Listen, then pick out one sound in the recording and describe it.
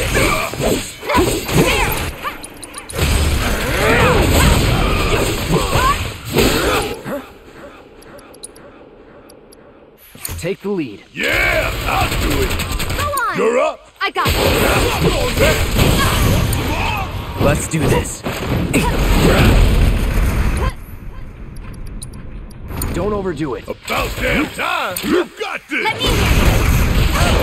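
Blades slash and strike with sharp, heavy impacts in a fast fight.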